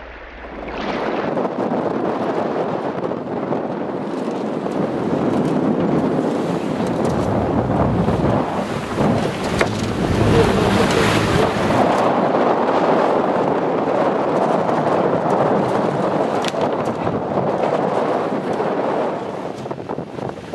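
Wind blows hard and buffets the microphone outdoors.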